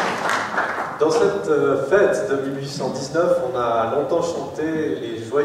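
A man speaks into a microphone.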